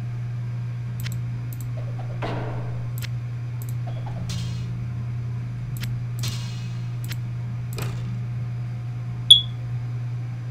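Game items click and clatter as they are moved around.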